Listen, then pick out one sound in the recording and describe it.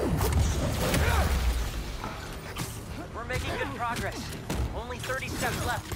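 Heavy punches and kicks thud and smack in a fight.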